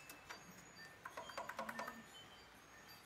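Saxophone keys click and clack.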